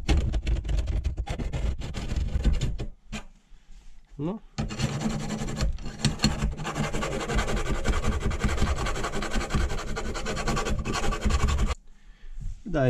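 A ratchet wrench clicks rapidly while loosening a bolt.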